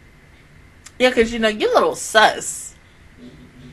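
A young woman laughs into a close microphone.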